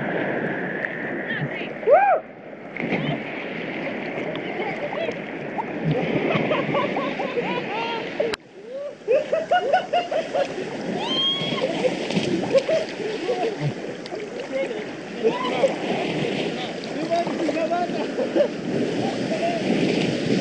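Sea waves slosh and splash close to the water's surface.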